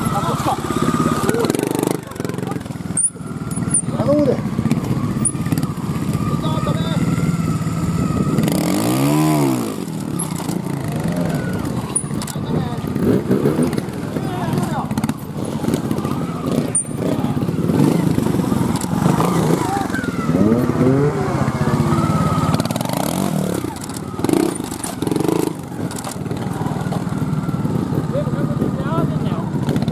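A motorbike engine idles and revs sharply in bursts.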